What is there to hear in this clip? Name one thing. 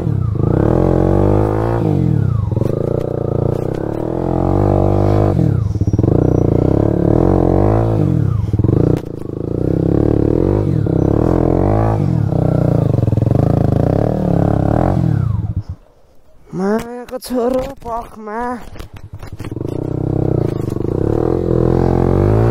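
A motorcycle engine revs up and down loudly, close by.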